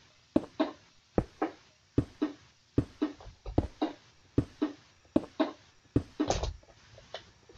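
Stone blocks are placed with quick, repeated knocks.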